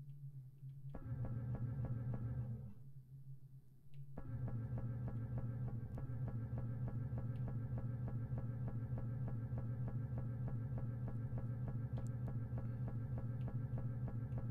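Video game music plays with a steady, fast pulsing beat.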